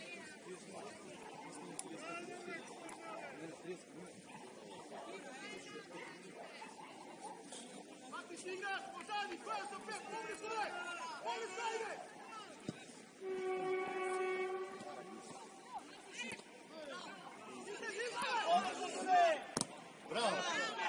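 A crowd of men and women call out and cheer from a distance outdoors.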